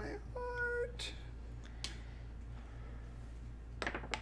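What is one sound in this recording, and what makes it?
Small game pieces click and clack on a tabletop.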